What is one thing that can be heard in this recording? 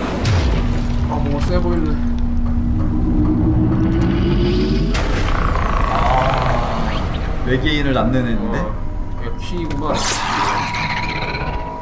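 Game music and sound effects play loudly.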